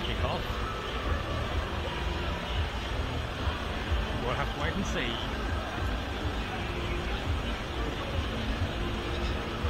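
A crowd of people chatter in the distance outdoors.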